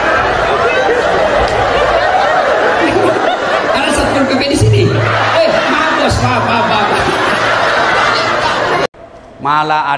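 A man preaches with animation into a microphone, heard through a loudspeaker.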